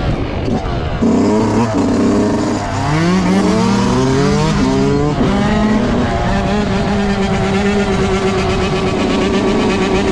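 Another dirt bike engine revs hard and its pitch rises and falls nearby.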